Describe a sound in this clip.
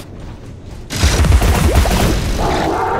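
A blast bursts with a deep boom.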